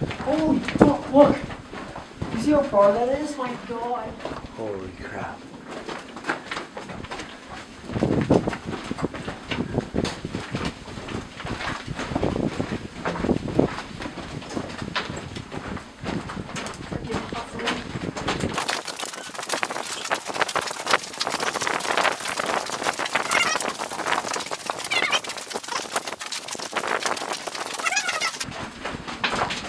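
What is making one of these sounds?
Footsteps crunch on gravel in an echoing tunnel.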